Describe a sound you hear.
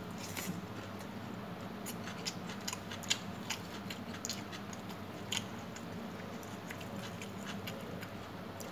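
Fingers squish and mix rice on a metal plate, close up.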